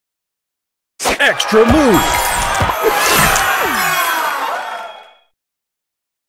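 Tiles burst with a sparkling cascade of game chimes.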